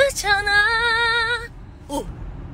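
A young woman sings loudly and close by with a wavering voice.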